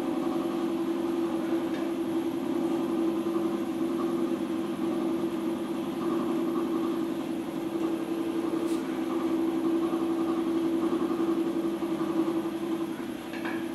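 A tool scrapes against wet clay on a spinning wheel.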